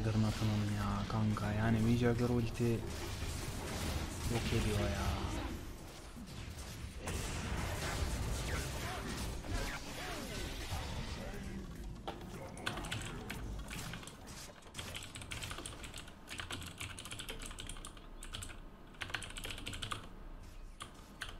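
Spells crackle and blows strike in a video game battle.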